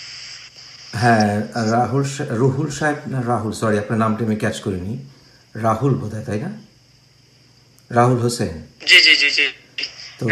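A man speaks calmly over a video call.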